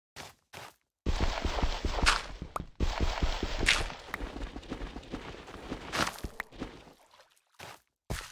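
Water splashes and swirls with movement through it.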